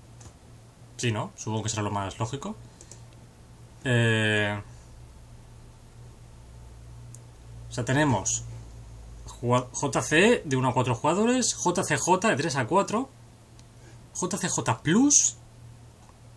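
A young man speaks casually and with animation into a close microphone.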